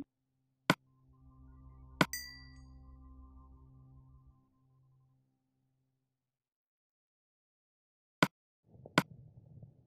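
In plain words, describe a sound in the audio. A game menu clicks sharply now and then.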